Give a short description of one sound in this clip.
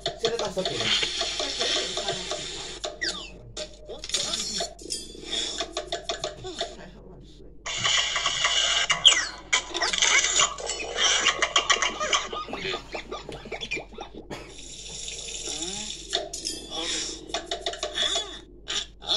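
Cartoon game music and sound effects play from a small tablet speaker.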